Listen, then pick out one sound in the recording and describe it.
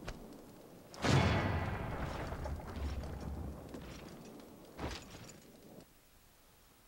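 A triumphant game jingle plays and rings out.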